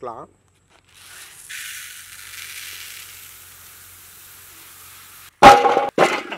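Dry lentils pour into a clay pot with a steady rushing hiss.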